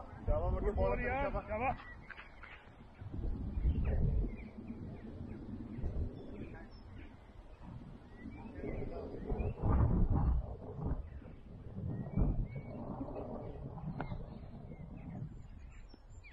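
A man talks nearby, close to the microphone.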